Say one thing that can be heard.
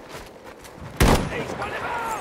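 A loud gunshot bangs close by.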